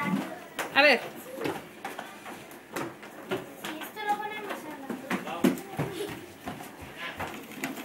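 Buttons click as a child presses them.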